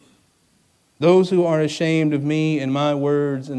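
A man sings held notes into a microphone.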